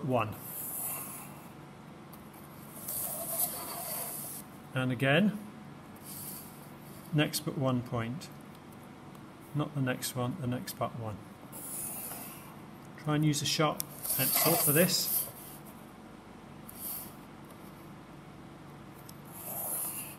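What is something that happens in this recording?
A pencil scratches across paper in short strokes.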